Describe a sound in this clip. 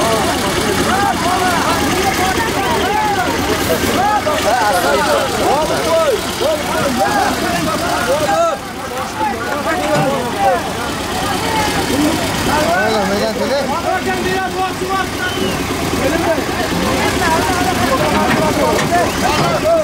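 A large outdoor crowd of men shouts and talks loudly all at once.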